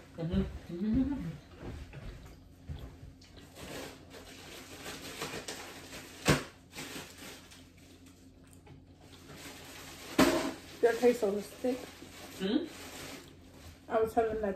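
A young woman chews food with wet, smacking sounds.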